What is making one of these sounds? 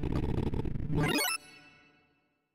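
A quick run of electronic tones sweeps upward in pitch.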